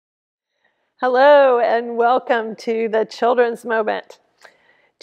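An older woman speaks warmly and calmly into a microphone.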